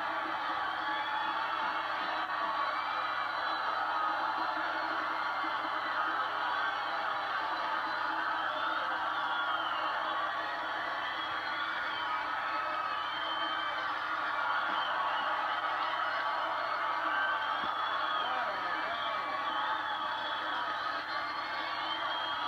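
A large crowd cheers and shouts excitedly, heard through a television speaker.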